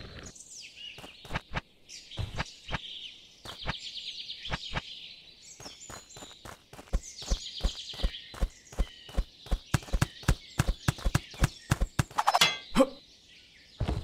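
Light footsteps patter quickly on the ground.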